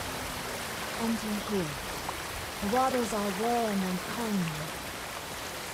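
An elderly woman speaks calmly.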